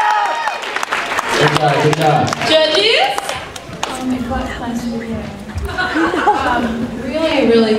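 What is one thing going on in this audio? A crowd of young people chatters and cheers nearby.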